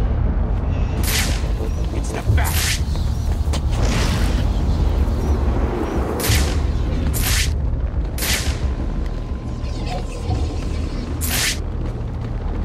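Wind rushes past in loud bursts as a cape swoops through the air.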